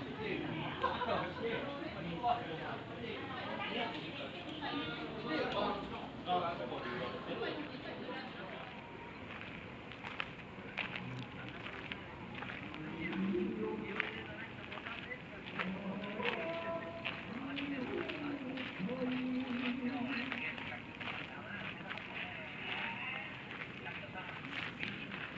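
Men talk and chatter nearby outdoors.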